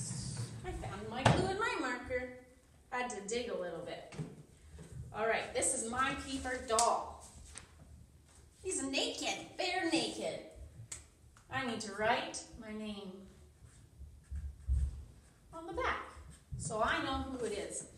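A young woman talks calmly and clearly, close by.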